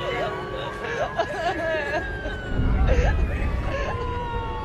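A man shouts in distress close by.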